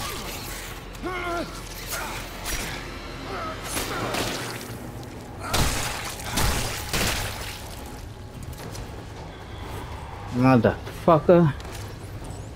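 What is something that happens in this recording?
A man grunts and cries out with strain, close by.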